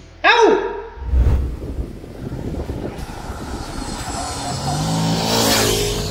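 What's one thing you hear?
A motorcycle engine roars as the motorcycle approaches.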